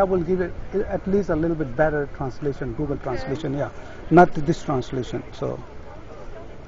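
A young man talks close by, in a lively way.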